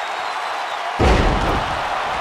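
A heavy body slams down onto a wrestling mat with a loud thud.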